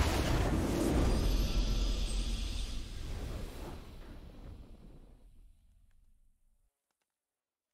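Triumphant victory music swells and fades away.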